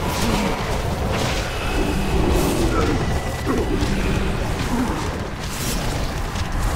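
Spell effects and weapon hits crackle and clash during a fight.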